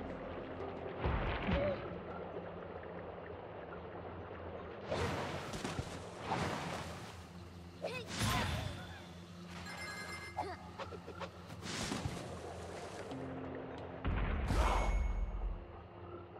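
Sharp whooshing swishes burst out now and then.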